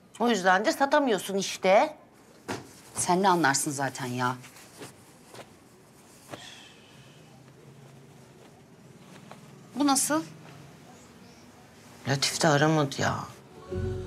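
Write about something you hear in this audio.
A middle-aged woman speaks close by, sharply and with feeling.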